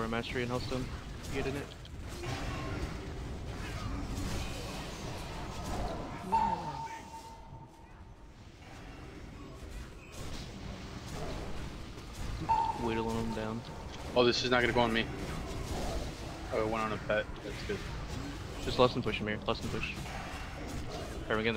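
Game spell effects whoosh and chime.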